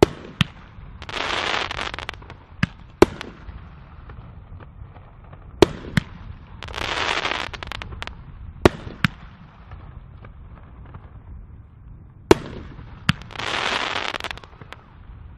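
Crackling firework stars sizzle and pop after each burst.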